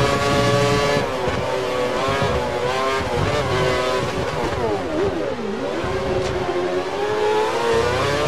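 A racing car engine drops in pitch as it brakes hard, then climbs again.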